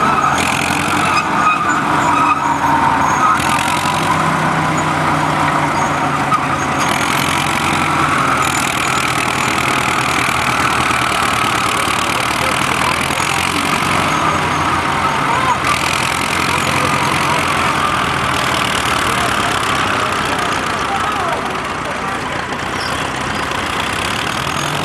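An old crawler tractor engine chugs and rumbles nearby, outdoors.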